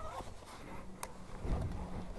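A motorcycle switch clicks.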